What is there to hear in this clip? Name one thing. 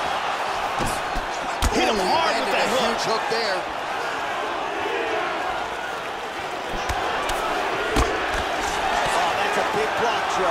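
A crowd murmurs and cheers steadily in a large arena.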